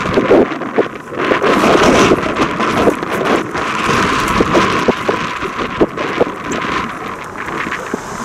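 A steam locomotive chuffs hard as it approaches.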